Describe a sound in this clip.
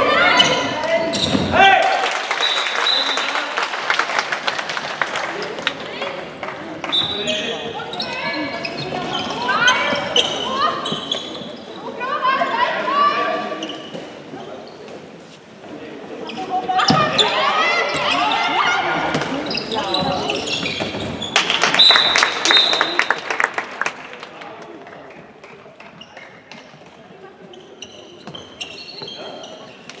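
A ball thumps as it bounces on a wooden floor.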